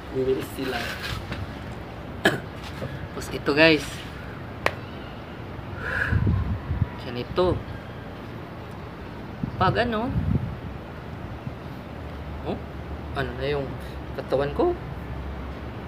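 A young man speaks calmly and close by, with pauses.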